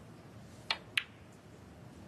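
A snooker ball knocks against another ball.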